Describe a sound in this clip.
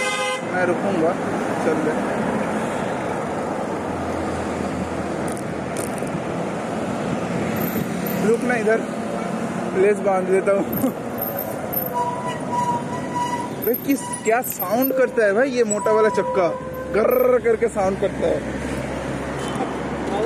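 Traffic rumbles steadily along a busy road outdoors.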